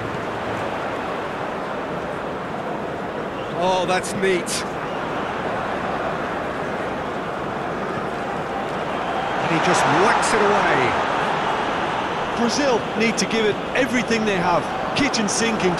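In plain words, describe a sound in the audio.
A large stadium crowd roars steadily, swelling louder for a moment.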